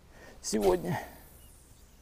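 A fishing reel whirs as it is wound in.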